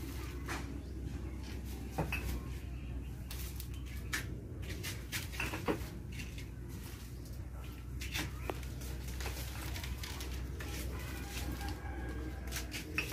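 Glass jars clink and plastic rustles as they are handled.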